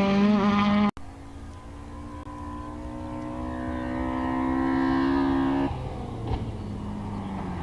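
A rally car engine revs loudly as the car approaches along a gravel road.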